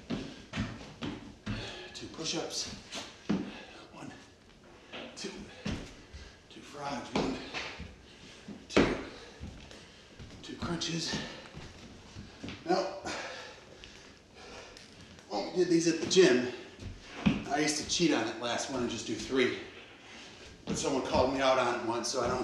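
Feet thump on a wooden floor.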